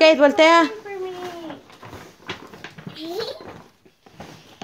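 A toddler squeals and babbles close by.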